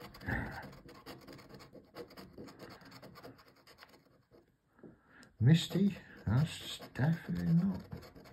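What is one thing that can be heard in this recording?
A plastic scraper scratches rapidly across a card.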